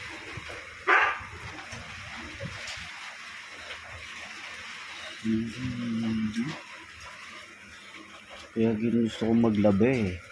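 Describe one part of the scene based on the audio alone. A hand rummages through clothes, rustling the fabric.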